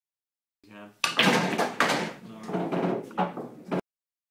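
Pool balls click together on a table.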